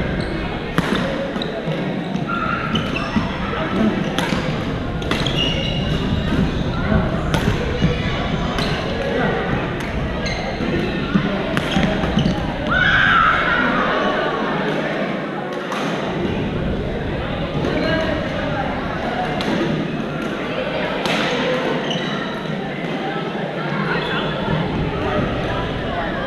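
Players call out and chatter across the courts in a large echoing gym.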